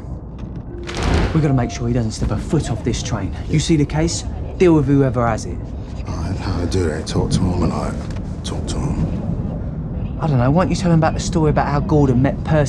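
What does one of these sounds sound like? Two men talk close by in low, tense voices.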